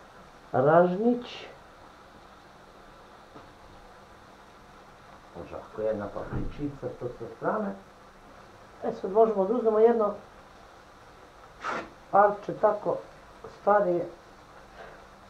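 A woman talks nearby in short, calm bursts.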